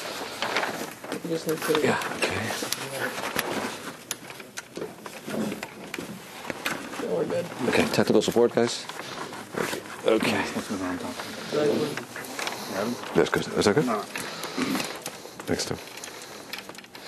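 A man speaks calmly, as if giving a lecture, in a room with some echo.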